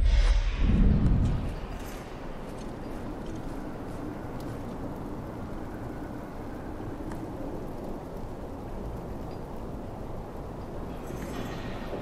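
A fire crackles softly in a brazier.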